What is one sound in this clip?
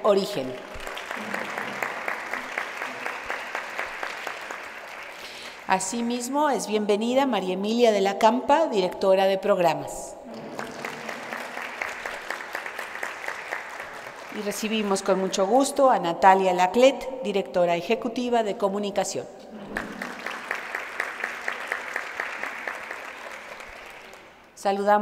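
An audience applauds in a room.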